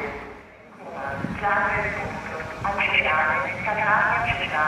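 A woman talks nearby.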